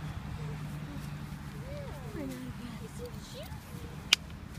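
A woman speaks to a puppy in a high, coaxing voice.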